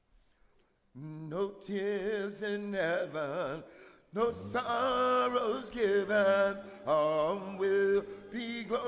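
An elderly man sings a slow hymn into a microphone.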